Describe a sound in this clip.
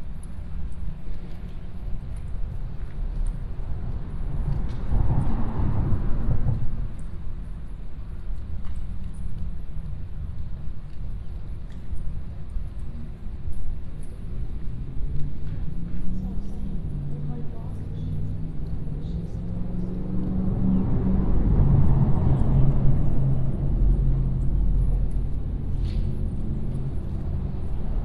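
Small waves lap and splash against a boat.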